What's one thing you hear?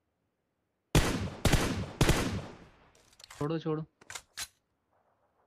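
Rapid gunshots crack in a burst.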